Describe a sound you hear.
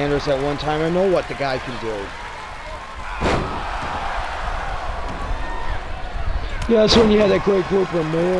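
A large crowd murmurs and cheers in an arena.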